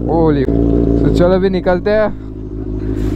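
A motorcycle engine revs sharply several times.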